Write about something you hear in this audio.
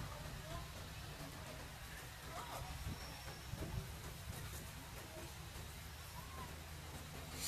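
A baby monkey squeaks softly now and then.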